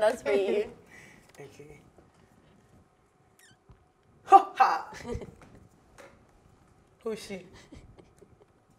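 A young woman speaks with animation into a microphone, in short bursts.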